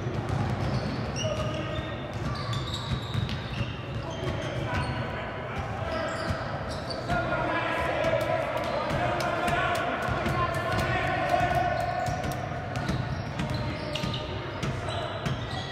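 Sneakers squeak sharply in an echoing gym.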